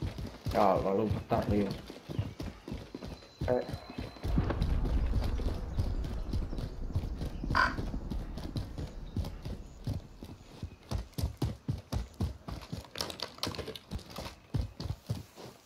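Footsteps thud quickly on hard ground and grass.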